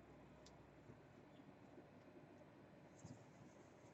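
Hands rub and press fabric with a soft rustle.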